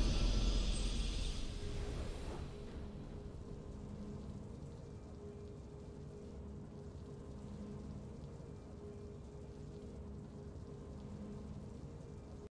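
A triumphant game fanfare plays loudly and fades into a soft, steady hum.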